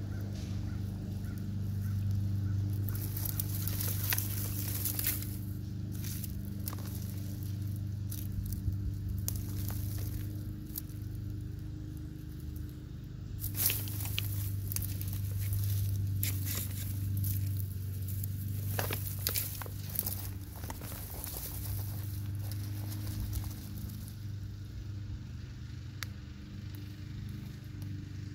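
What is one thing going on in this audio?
Hands pull plant roots out of loose soil with soft rustling and crumbling.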